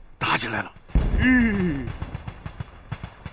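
A middle-aged man speaks with distress, close by.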